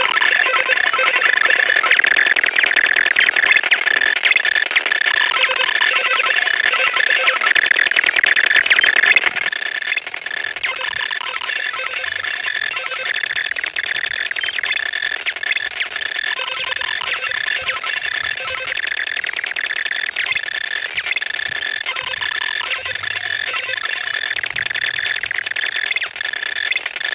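Electronic game music plays with bright beeping tones.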